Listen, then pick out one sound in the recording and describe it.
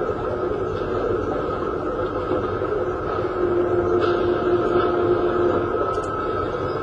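Music plays from a television loudspeaker.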